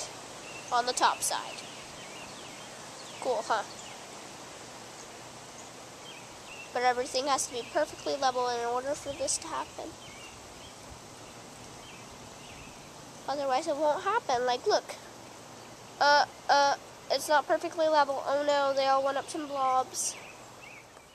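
A young girl talks close by, calmly and playfully.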